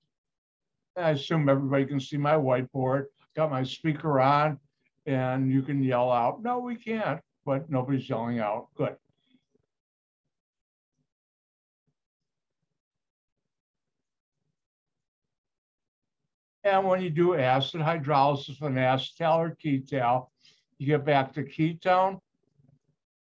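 A man speaks calmly in pauses, heard through an online call.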